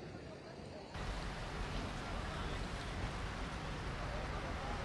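Cars drive past outdoors.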